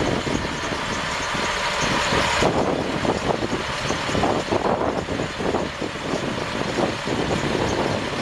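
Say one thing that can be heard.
A large diesel truck engine idles nearby.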